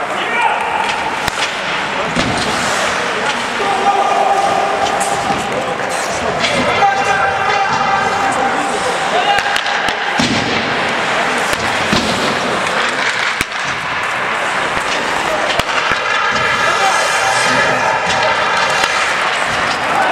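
Skates scrape and hiss across the ice in a large echoing hall.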